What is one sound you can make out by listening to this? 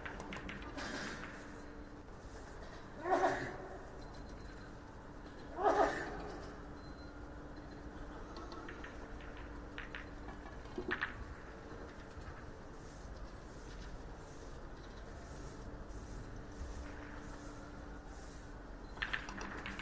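Billiard balls knock against each other.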